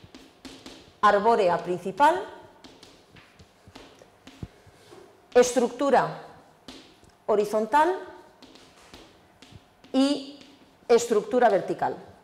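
A woman speaks with animation, heard close through a microphone.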